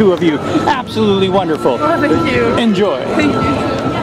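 A young man and a young woman talk and laugh close by.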